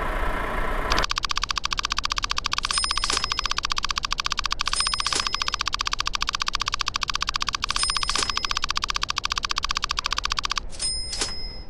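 A rapid ticking counts up steadily.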